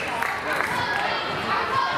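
A woman shouts instructions from the sideline.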